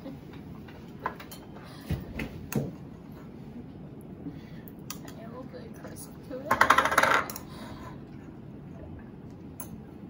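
Forks clink and scrape against plates.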